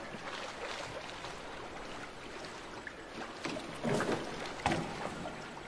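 Oars splash in water as a small boat is rowed along.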